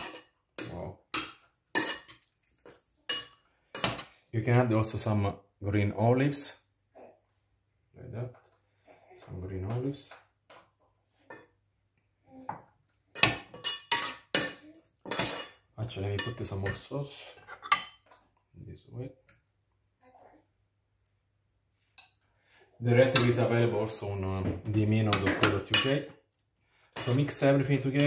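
A metal spoon stirs and scrapes in a saucepan.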